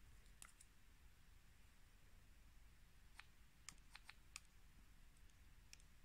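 A stylus taps on a phone's glass.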